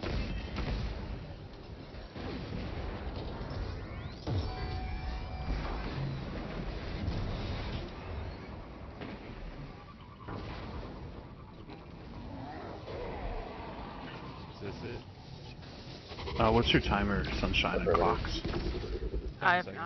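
Gunfire and blasts of a video game battle crackle.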